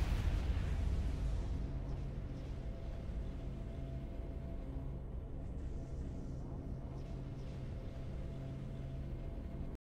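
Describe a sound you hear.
Triumphant game music plays with a low, steady drone.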